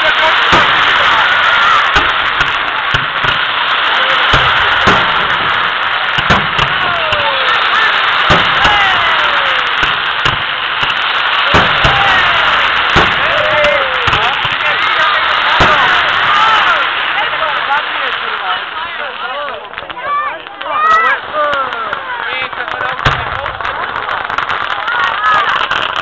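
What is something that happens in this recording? Firework rockets whistle as they shoot up.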